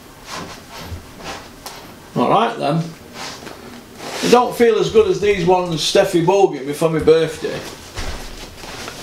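Boxing gloves rustle and thump as a man handles them.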